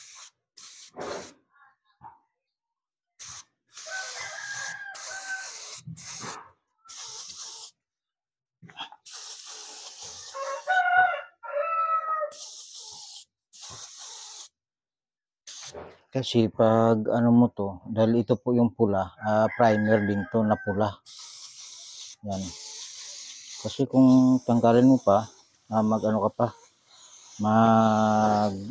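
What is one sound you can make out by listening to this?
An air tool hisses in short bursts.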